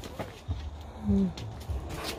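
A little girl makes a short high vocal sound.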